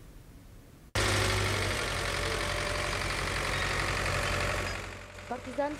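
A tractor engine rumbles steadily nearby.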